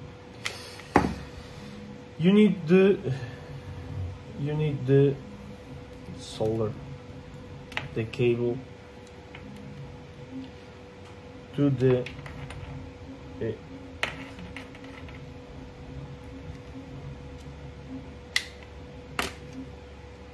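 Small plastic parts click and tap as hands handle them.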